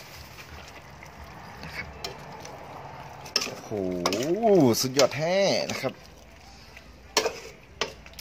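Soup bubbles and simmers in a pot.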